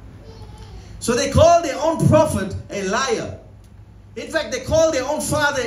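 A man preaches forcefully into a microphone, his voice loud and emphatic.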